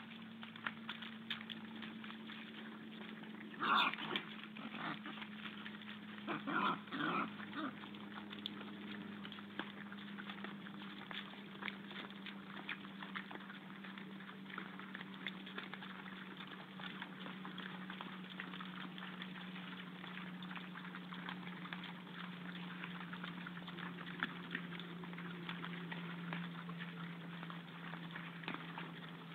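Wild boars root and snuffle in wet ground, with crackling and rustling.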